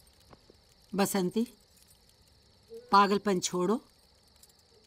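A woman speaks softly and sorrowfully, close by.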